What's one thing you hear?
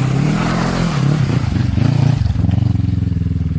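Gravel sprays from spinning tyres.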